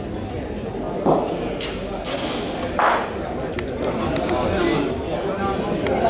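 A bowling ball rolls across a hard indoor court.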